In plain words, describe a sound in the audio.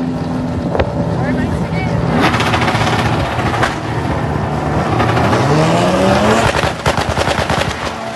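Race car engines roar loudly while idling at the line.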